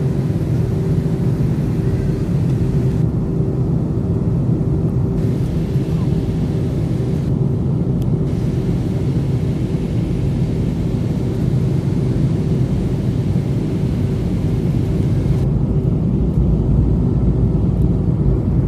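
A jet airliner's engines roar steadily inside the cabin.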